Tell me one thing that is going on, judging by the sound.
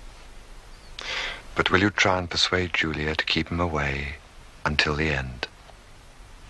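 A man speaks calmly and softly nearby.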